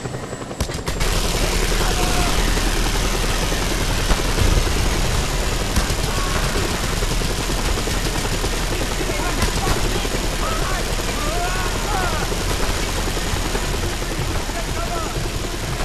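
A mounted gun fires in rapid bursts.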